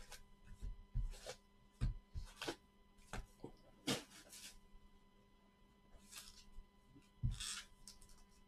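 Cardboard boxes and card packs knock and shuffle on a table.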